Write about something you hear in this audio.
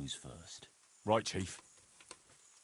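A man replies briefly in a gruff voice.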